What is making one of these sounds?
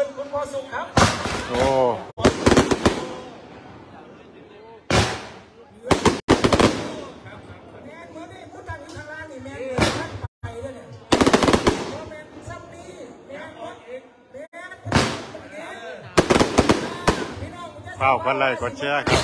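Fireworks explode loudly overhead in sharp, rapid bursts.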